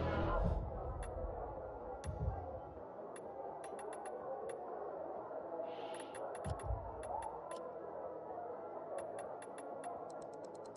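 Short, soft clicks tick now and then.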